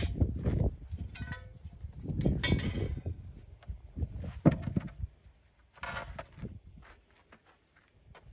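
Wooden logs knock against a chopping block.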